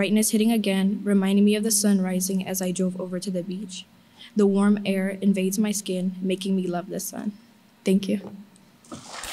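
A young woman reads aloud calmly into a microphone.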